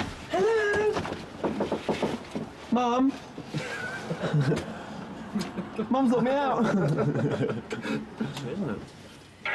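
A young man speaks urgently nearby.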